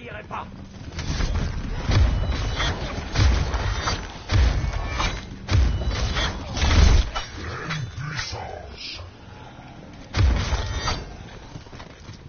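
A blade slashes through the air with heavy thuds.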